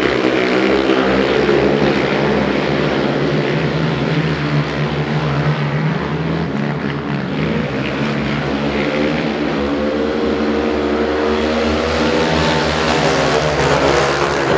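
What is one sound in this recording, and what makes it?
Motorcycle engines whine up and down in pitch.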